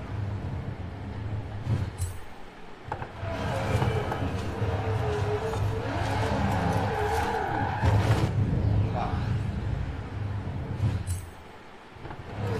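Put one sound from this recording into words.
A race car engine roars at high revs.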